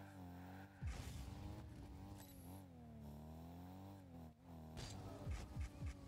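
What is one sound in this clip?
A ball is struck with heavy thumps.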